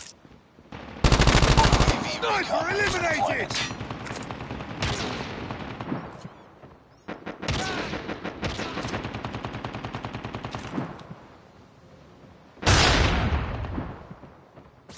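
A rapid-fire gun shoots in short bursts.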